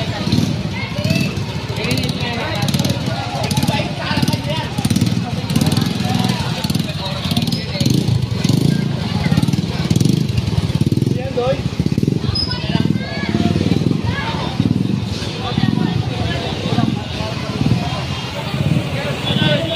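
A crowd of people chatters in a busy street outdoors.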